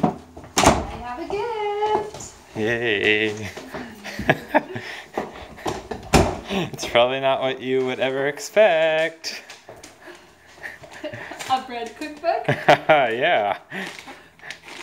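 A woman talks and laughs excitedly close by.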